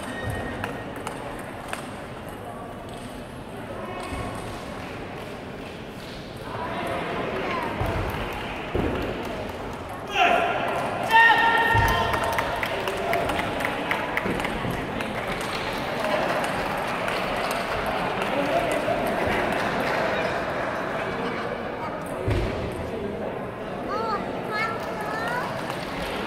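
A table tennis ball bounces on the table.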